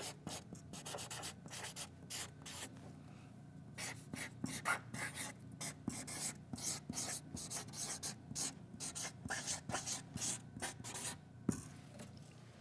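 A marker squeaks on paper in quick strokes.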